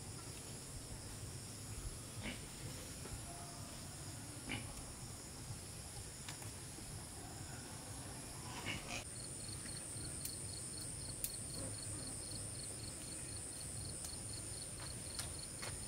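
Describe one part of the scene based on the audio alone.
Dry bamboo and sticks crackle as a fire catches.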